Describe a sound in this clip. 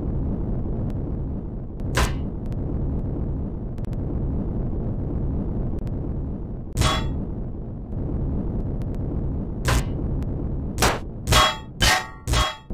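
A salvage tool hums with a steady low drone.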